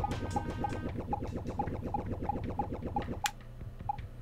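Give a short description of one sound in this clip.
Chiptune video game music plays with a fast bouncing beat, then cuts off.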